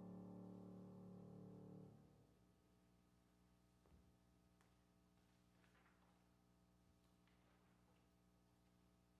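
A piano chord rings on and slowly fades.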